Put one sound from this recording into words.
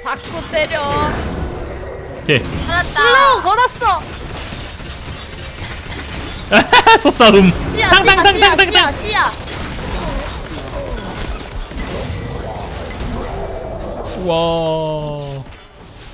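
Magic spells whoosh and blast as fantasy characters fight.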